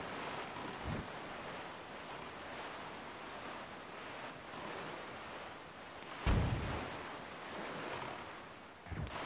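A boat splashes across choppy water.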